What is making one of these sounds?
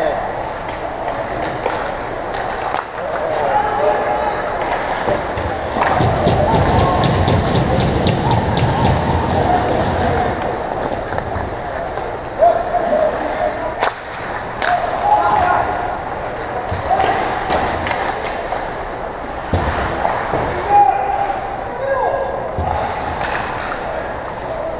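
Skates scrape and hiss on ice in a large echoing rink.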